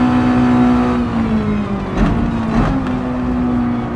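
A racing car engine drops in pitch and sputters as the car slows for a turn.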